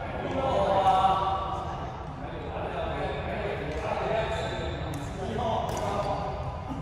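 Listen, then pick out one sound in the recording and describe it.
Rackets strike a shuttlecock with sharp pops in an echoing hall.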